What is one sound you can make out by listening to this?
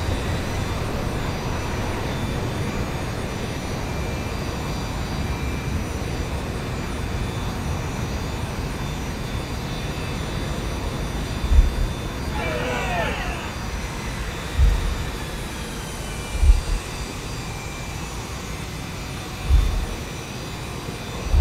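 A jet engine hums steadily as an airliner taxis.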